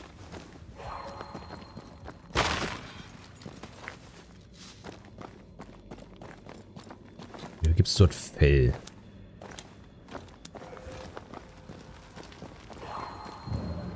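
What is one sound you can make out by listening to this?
Footsteps crunch steadily on rough ground.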